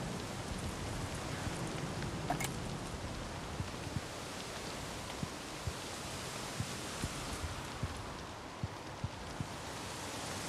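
Footsteps thud and crunch across a debris-strewn wooden floor.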